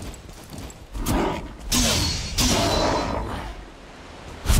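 A weapon strikes a creature with heavy thuds.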